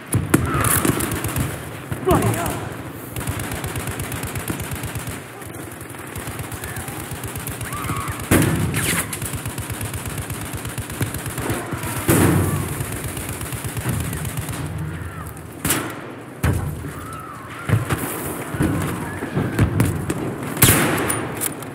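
Loud rifle shots crack now and then, with a ringing echo.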